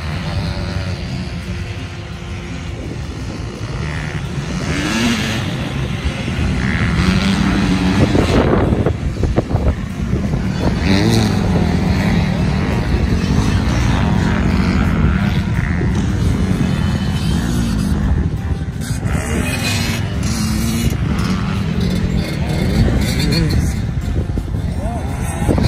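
Dirt bike engines whine and rev, close by and in the distance.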